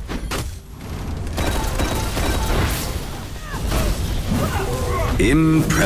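Sci-fi energy weapons fire in a video game.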